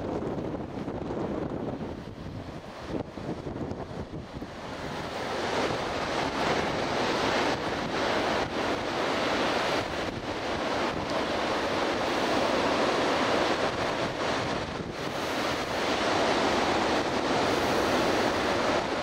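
Wind blows and buffets loudly.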